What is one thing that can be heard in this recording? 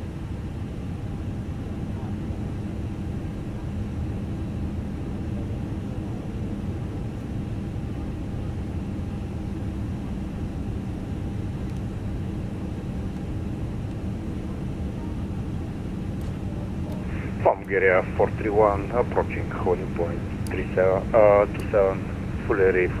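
Jet engines idle with a steady low rumble.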